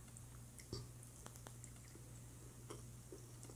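A woman chews and smacks her lips up close.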